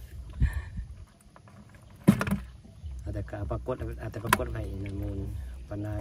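A hand shifts wet fish with soft slapping thuds.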